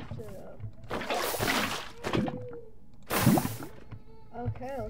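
Liquid splashes loudly.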